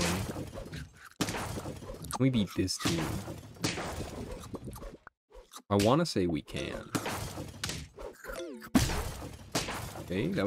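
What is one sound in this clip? Cartoon game creatures clash with quick thumping hit sounds.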